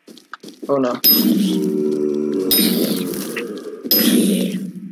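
A weapon strikes zombies with sharp hits.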